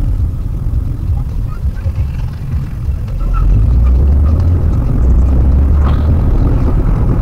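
A car engine hums steadily with a low rumble from inside the car.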